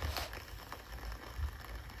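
A man chews food with his mouth open close by.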